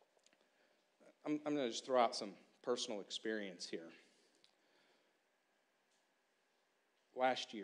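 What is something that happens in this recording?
A man speaks with emphasis through a microphone.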